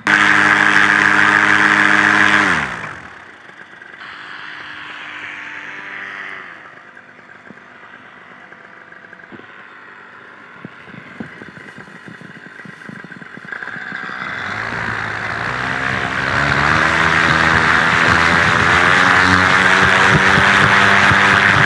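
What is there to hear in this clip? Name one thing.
A small propeller engine roars close by, drops to a low idle, then revs up loudly again.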